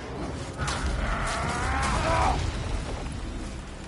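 A heavy body thuds onto hard ground.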